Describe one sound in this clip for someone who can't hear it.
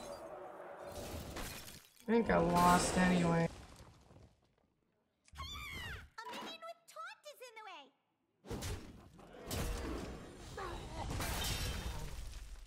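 Magical game sound effects chime and whoosh.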